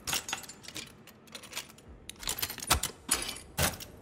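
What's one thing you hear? Bolt cutters snap through a padlock.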